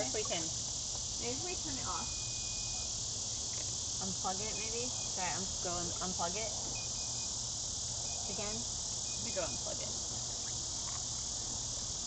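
Young women talk and laugh together outdoors.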